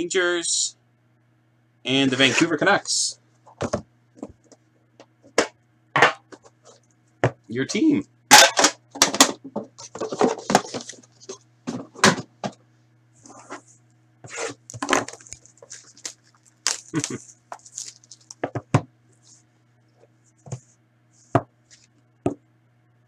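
Cardboard packaging rustles and scrapes as hands open a box.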